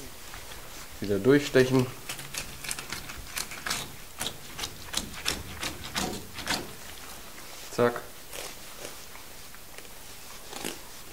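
A knife slices and scrapes along a fish's bones on a wooden board.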